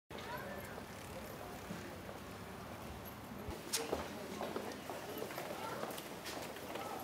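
Footsteps patter on paved ground.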